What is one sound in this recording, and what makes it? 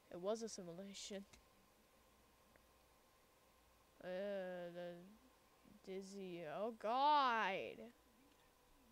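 A young woman speaks expressively into a close microphone.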